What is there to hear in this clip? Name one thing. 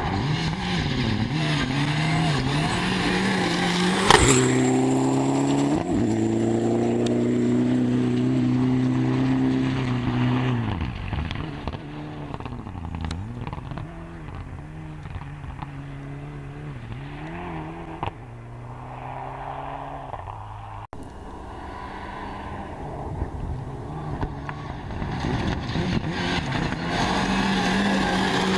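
A rally car engine roars at high revs and changes gear as it speeds past.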